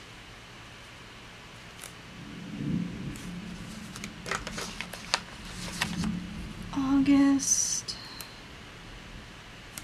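A sticker peels off its backing.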